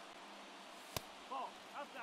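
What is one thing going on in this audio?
A baseball pops into a catcher's mitt.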